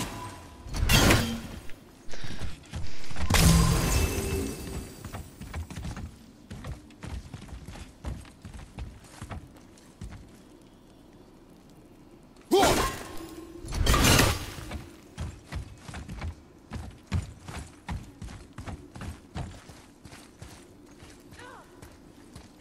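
Heavy footsteps thud and scrape on wooden boards and stone.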